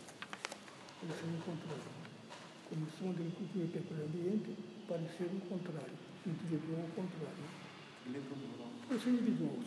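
An elderly man speaks quietly and close by, through a face mask.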